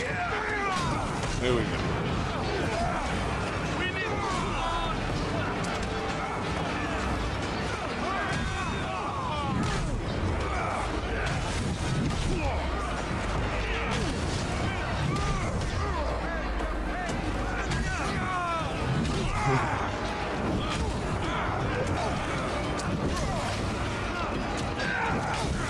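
Swords and shields clash and clang in a battle.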